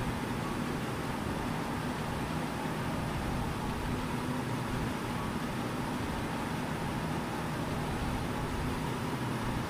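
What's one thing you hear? A truck engine drones steadily while driving at speed.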